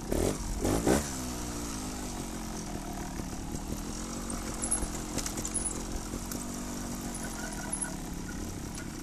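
A trials motorcycle rolls down a dirt slope at low throttle.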